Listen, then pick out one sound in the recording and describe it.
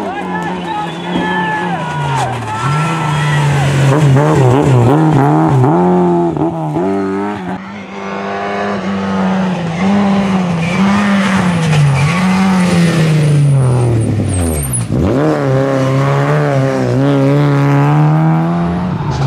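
A rally car engine revs hard, rising and falling as it shifts gears.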